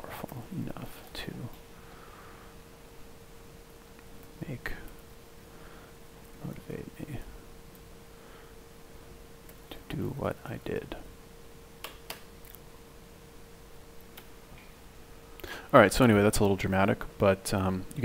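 A young man speaks in short bursts close to a microphone, with pauses in between.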